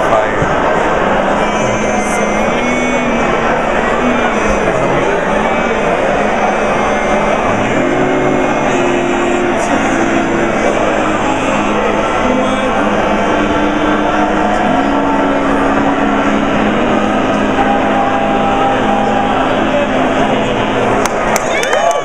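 A man sings loudly nearby.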